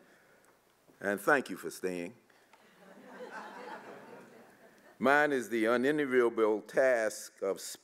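An elderly man speaks calmly into a microphone, heard through a loudspeaker in a large hall.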